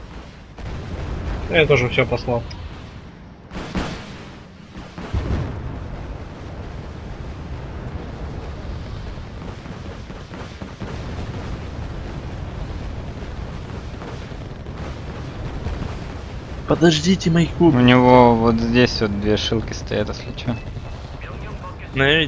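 Explosions rumble low and steadily in a battle.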